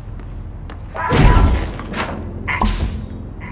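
A sudden loud burst of energy blasts and rumbles.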